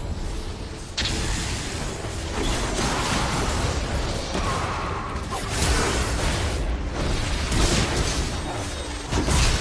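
Spells whoosh and crackle in a fast fight.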